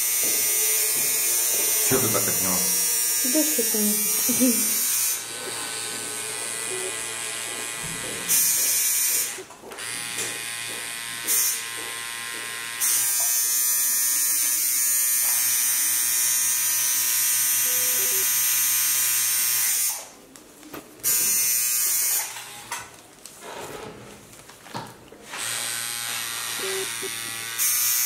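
A tattoo machine buzzes steadily up close.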